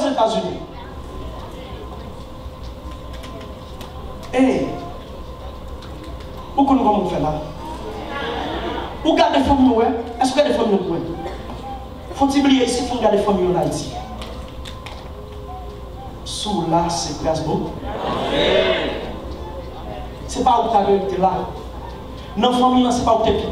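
A man preaches with animation into a microphone, heard through loudspeakers in a large echoing hall.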